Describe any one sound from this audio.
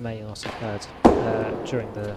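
A racket strikes a ball with a sharp crack.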